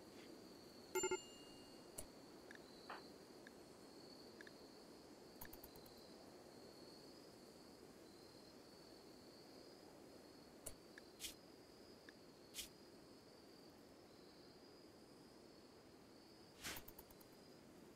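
Soft interface clicks sound now and then.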